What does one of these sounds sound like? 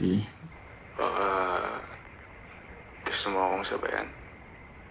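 A second young man speaks calmly over an online call.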